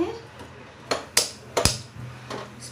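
A gas lighter clicks sharply a few times.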